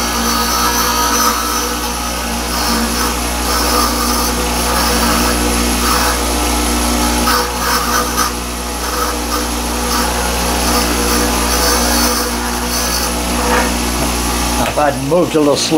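Metal grinds and hisses against a spinning grinding wheel.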